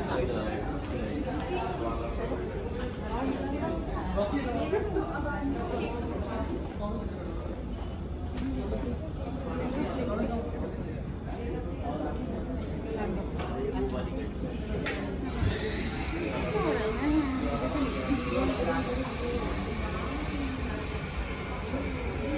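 A group of men and women chatter close by.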